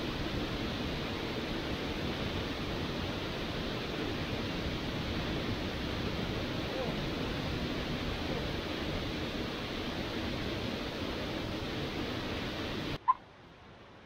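A waterfall roars steadily into a pool.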